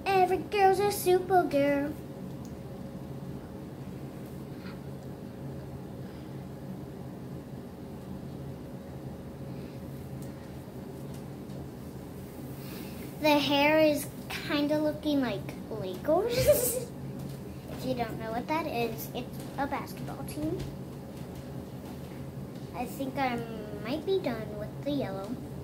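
A young girl talks with animation close to the microphone.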